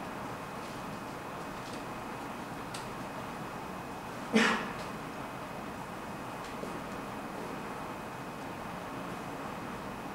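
Footsteps sound softly on a hard floor.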